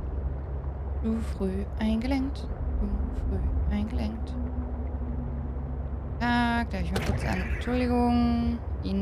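A young woman talks calmly and close into a microphone.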